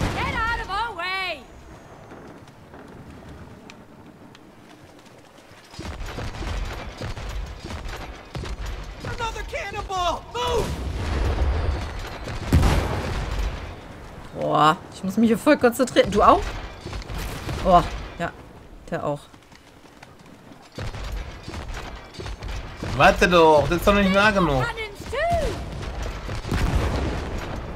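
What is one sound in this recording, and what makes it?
Loud explosions boom and crackle.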